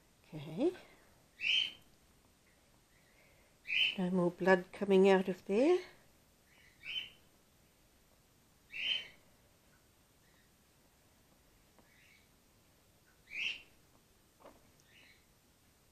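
A bat squeals and chatters in short, sharp bursts close by.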